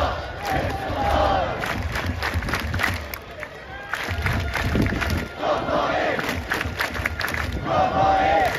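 A large stadium crowd cheers and chants.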